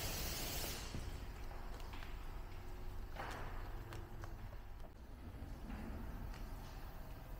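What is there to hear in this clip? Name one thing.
A soapy sponge squelches and rubs against a car's body.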